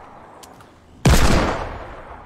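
A rifle fires loudly.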